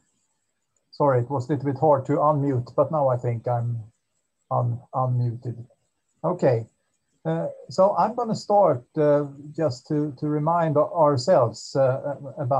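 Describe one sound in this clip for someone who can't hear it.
A man lectures calmly into a microphone, heard as if over an online call.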